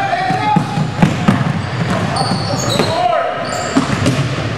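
A basketball bounces on a hard floor with a thud.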